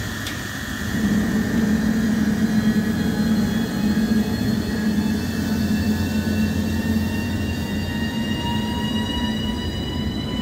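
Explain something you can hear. An electric locomotive pulls away with a low hum and a steadily rising whine.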